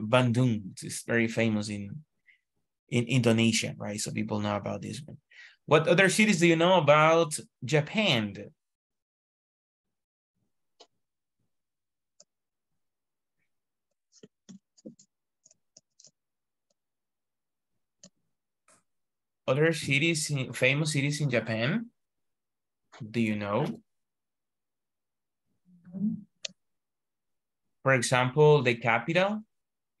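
A man speaks calmly over an online call, pausing now and then.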